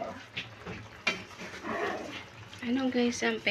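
A plastic spatula scrapes and knocks against a metal pot.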